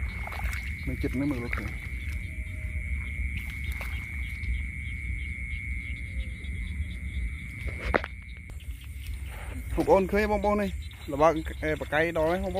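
Tall dry grass rustles as a person walks through it.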